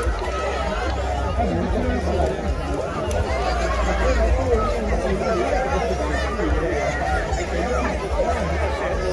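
A crowd of men, women and children chatter outdoors.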